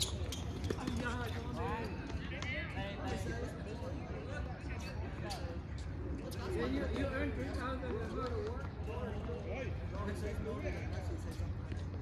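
Men call out and talk across an open court.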